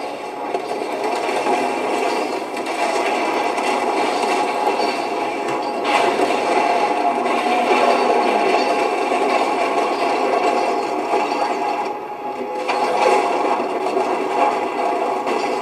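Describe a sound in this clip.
Game gunfire rattles rapidly through a small speaker.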